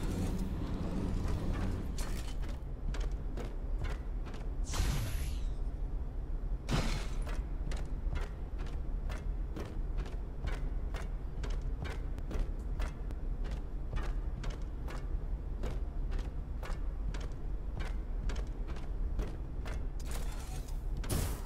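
Heavy footsteps clank steadily on a metal floor.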